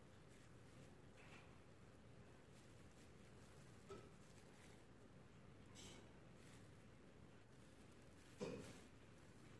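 A paintbrush softly brushes over metal.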